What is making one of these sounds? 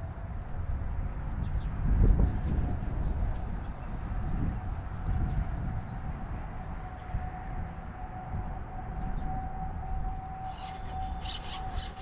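Wind gusts and rumbles across the microphone outdoors.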